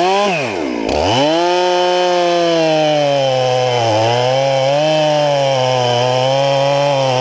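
A chainsaw cuts steadily into a tree trunk with a loud, droning whine.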